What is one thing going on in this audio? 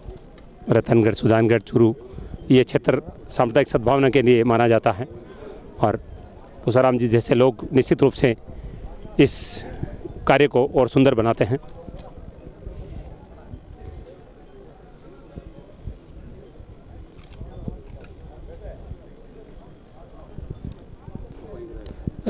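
A crowd of men murmurs softly in the background.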